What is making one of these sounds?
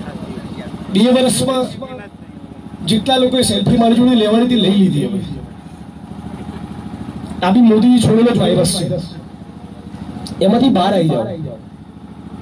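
A young man speaks forcefully through a microphone over loudspeakers, outdoors.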